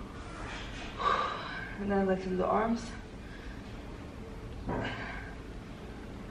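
A young woman speaks nearby between breaths.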